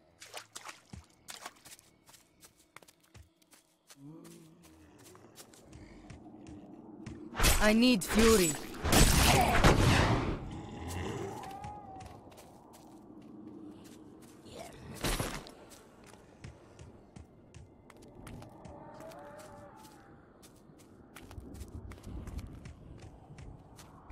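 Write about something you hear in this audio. Footsteps tap steadily on the ground.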